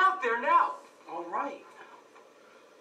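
A young man speaks through a loudspeaker.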